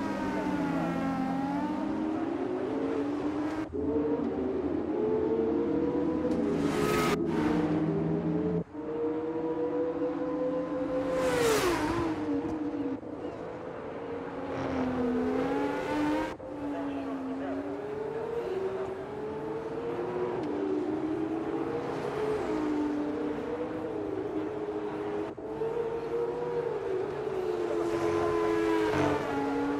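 A racing car engine screams at high revs, rising and falling as it shifts gears.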